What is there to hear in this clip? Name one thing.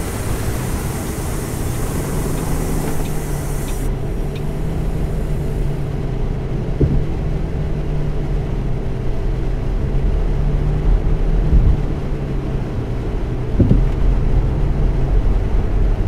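A bus engine hums steadily and rises as the bus drives along.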